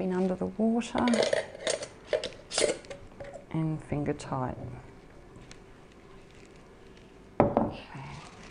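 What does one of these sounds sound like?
Glass jars clink and knock together.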